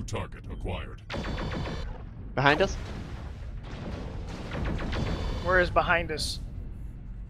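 Laser weapons fire with buzzing, crackling bursts.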